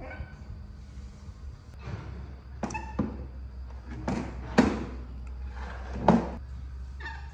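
A plastic stool scrapes and bumps across a hard tiled floor.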